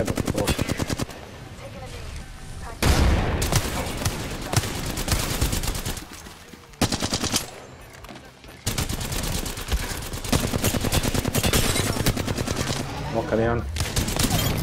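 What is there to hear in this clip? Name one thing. Rapid automatic gunfire rattles.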